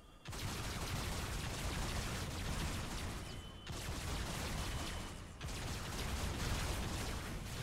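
A rotary machine gun fires in a rapid, roaring stream with brief pauses.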